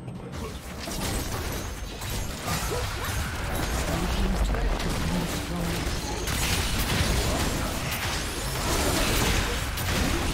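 Spell effects whoosh and crackle in a fight.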